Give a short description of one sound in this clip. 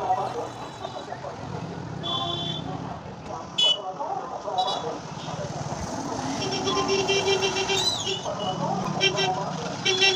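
Motorcycle engines rumble past nearby.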